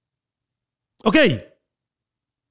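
A man says a short word close to a microphone.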